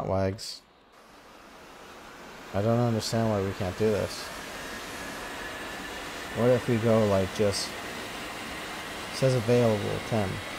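A jet engine whines and roars, slowly growing louder.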